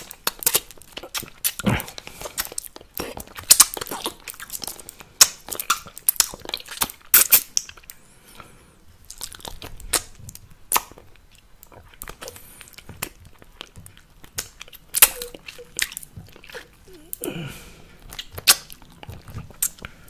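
Mouth sounds and lip smacks crackle close to a microphone, with sharp clicks and pops.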